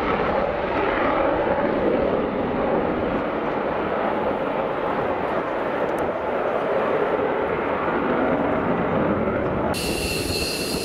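A jet engine roars loudly as a fighter jet climbs away overhead.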